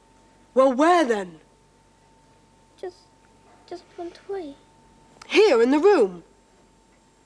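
A person speaks close by in a high, lilting voice.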